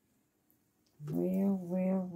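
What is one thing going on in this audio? A woman coos in a high, sing-song voice.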